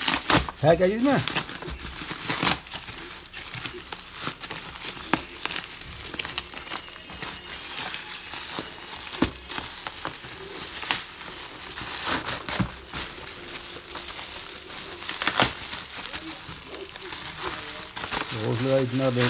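Plastic packaging and bubble wrap crinkle and rustle as they are handled.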